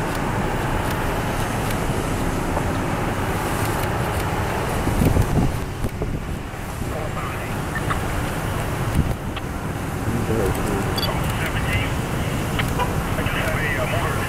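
A procession of cars drives slowly past, engines humming and tyres rolling on the road.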